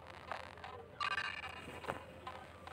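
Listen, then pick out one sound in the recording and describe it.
A short electronic chime rings out.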